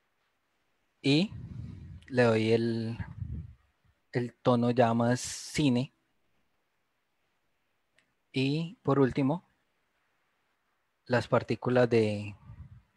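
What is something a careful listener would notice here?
A man speaks calmly in bursts through an online call.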